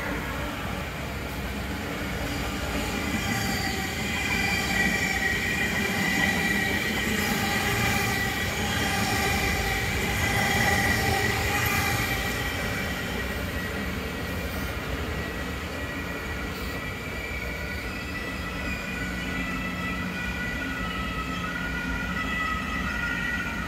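A train rumbles past on the tracks close by.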